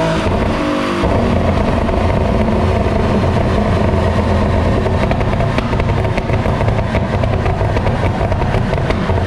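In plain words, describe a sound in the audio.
A sports car engine roars at a steady high speed.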